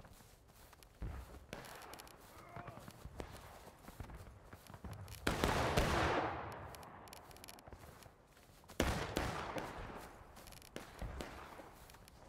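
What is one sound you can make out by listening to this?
Rifle shots crack and boom across an open battlefield.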